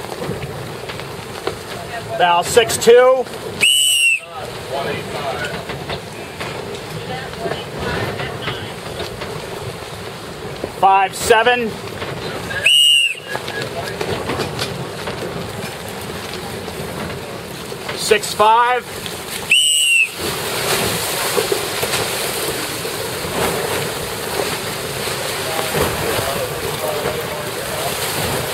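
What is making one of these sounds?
Choppy waves slosh and splash against a boat's hull.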